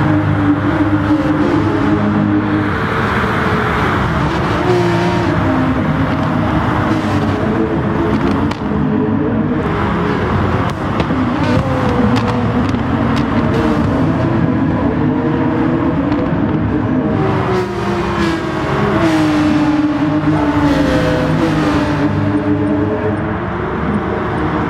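Racing car engines roar loudly and rise and fall in pitch as the cars speed past.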